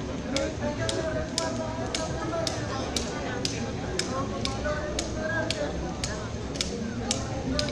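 Dancers' ankle rattles shake in a steady, quick beat.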